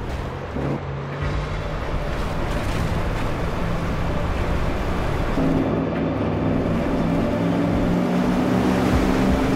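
Water splashes and hisses against a speeding boat's hull.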